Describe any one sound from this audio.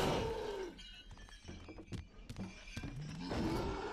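A sword swishes and strikes in quick blows.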